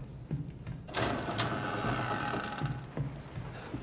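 A wooden door creaks open slowly.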